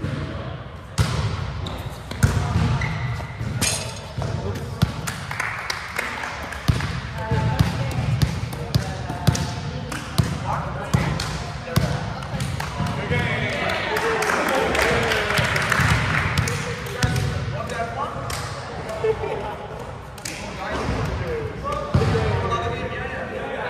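A volleyball is hit with sharp smacks in a large echoing gym.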